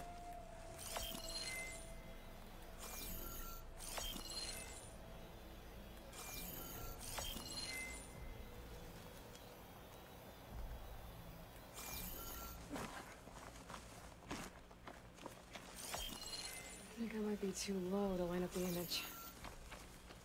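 Bright electronic pings and chimes ring out again and again.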